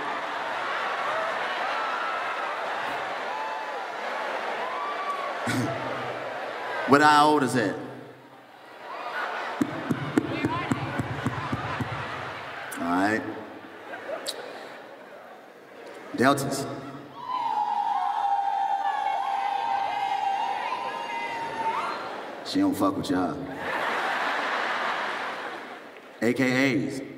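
A large crowd laughs and cheers.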